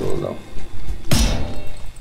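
A weapon swings through the air with a sharp whoosh.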